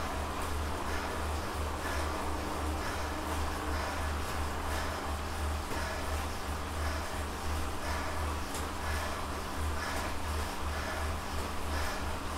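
A man breathes heavily close by.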